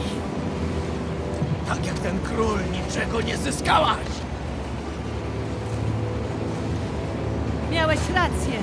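A young man talks into a close microphone.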